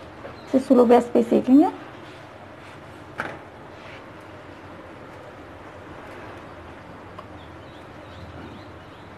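A flatbread sizzles softly on a hot griddle.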